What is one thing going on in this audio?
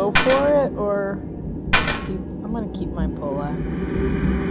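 Short electronic chimes sound as game menu options are picked.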